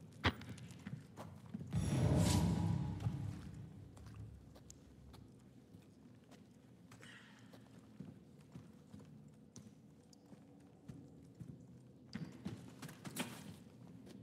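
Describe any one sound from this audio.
Footsteps crunch on rocky ground in a cave.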